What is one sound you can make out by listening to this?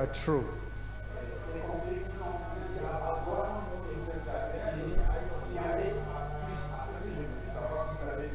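A second adult man speaks more softly through a microphone.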